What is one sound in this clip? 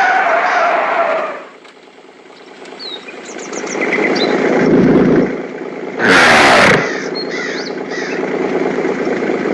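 A truck engine hums steadily.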